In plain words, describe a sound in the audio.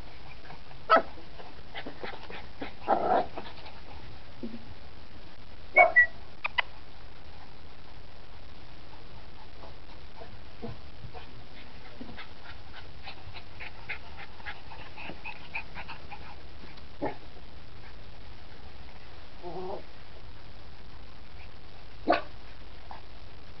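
Small dogs yelp and growl as they play.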